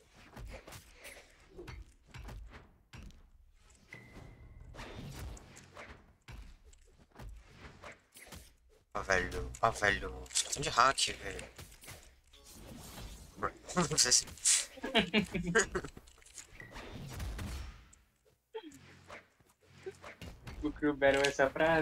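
Game blows thump and swish in quick bursts.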